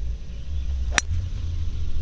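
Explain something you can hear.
A golf club strikes a ball with a sharp click.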